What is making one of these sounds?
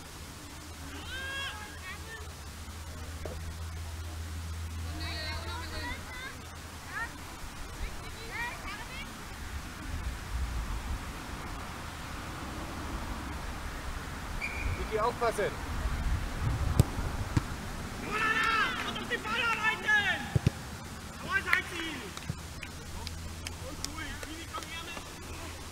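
Young girls shout and call out outdoors, some distance away.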